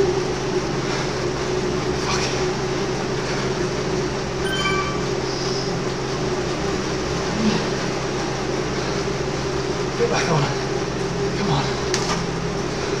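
A man pants heavily close by.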